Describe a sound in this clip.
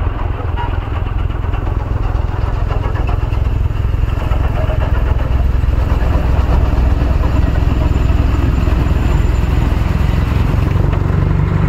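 A snow blower engine roars steadily close by.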